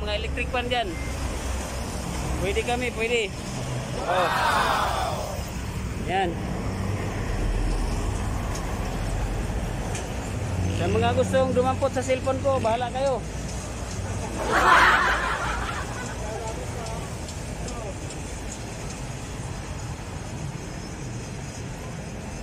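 Traffic rumbles steadily past on a busy road.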